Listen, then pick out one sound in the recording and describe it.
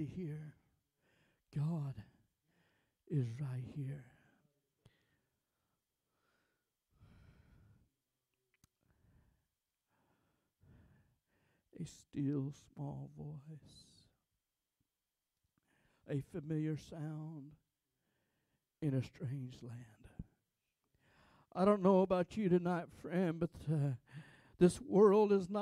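A man speaks with feeling into a microphone, in bursts with long pauses, heard through loudspeakers in a large room.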